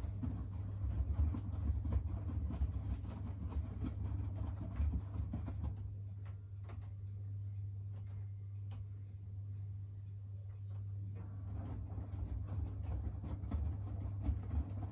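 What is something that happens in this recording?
Wet laundry tumbles and sloshes in a washing machine drum, pausing briefly.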